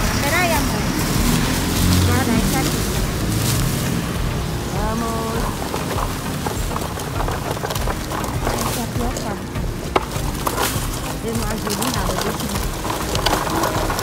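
Plastic bags rustle and crinkle in a cart.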